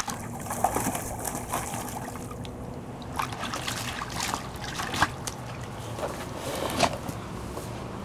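A dog splashes water with its paws in a shallow tub.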